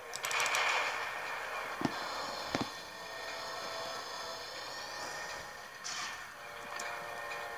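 Video game gunfire and blasts play through small laptop speakers.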